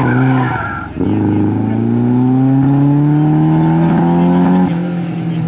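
A rally car engine revs up hard as the car speeds away.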